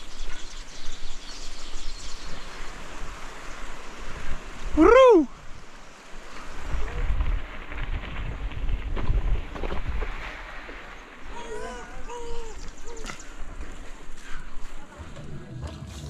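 Mountain bike tyres roll over a dirt trail.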